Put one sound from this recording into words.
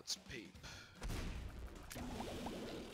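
A video game beam fires with a loud roaring blast.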